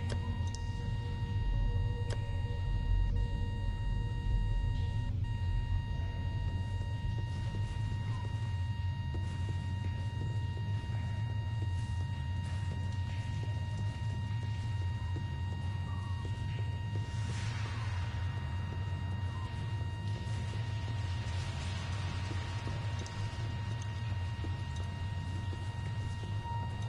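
A deep, steady rumbling drone hums throughout.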